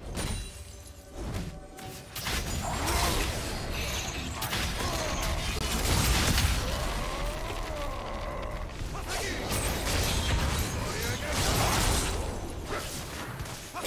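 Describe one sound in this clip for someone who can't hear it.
Video game weapons strike with sharp hits.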